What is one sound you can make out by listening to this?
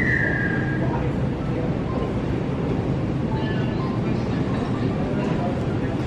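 Flip-flops slap on a hard floor with each step.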